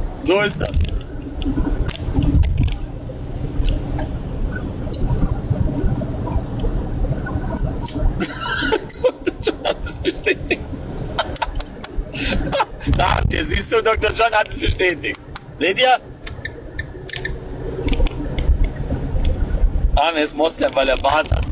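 A man talks casually and close to a phone microphone.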